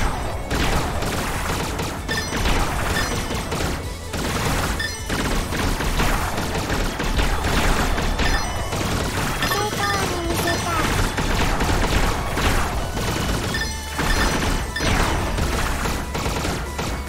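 Rapid shooting sounds fire in quick bursts.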